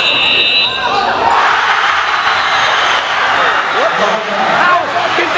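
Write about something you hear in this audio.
A crowd cheers loudly in an echoing gym.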